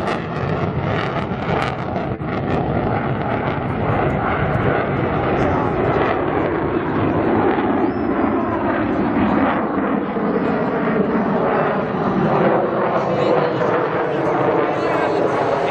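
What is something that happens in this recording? A jet engine roars loudly overhead, with a falling pitch as the jet passes.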